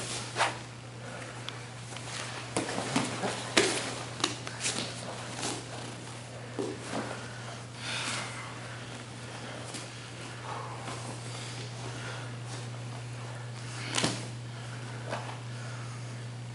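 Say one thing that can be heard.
Cloth rustles and bodies shift on a padded mat.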